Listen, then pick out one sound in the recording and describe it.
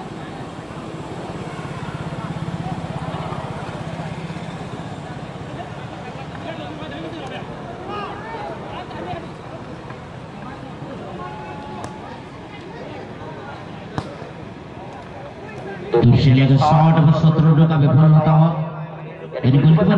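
A large crowd of spectators murmurs and chatters outdoors.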